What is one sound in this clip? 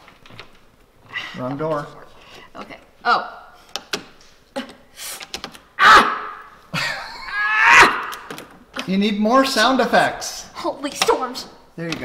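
A door lock clicks and rattles.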